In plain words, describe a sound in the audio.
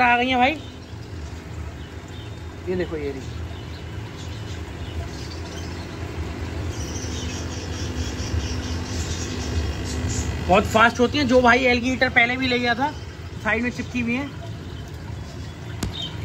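An aquarium pump hums steadily with water bubbling.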